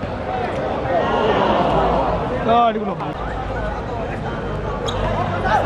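A crowd of young spectators cheers and shouts.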